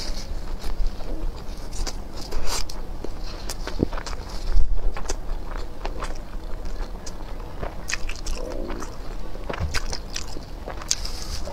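Skewers of food clack and rustle as they are handled.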